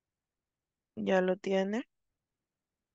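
A young woman speaks briefly and calmly into a close microphone.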